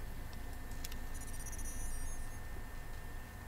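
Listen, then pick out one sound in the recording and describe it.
A robot makes a string of high electronic beeps.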